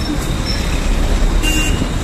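A bus passes on a busy street.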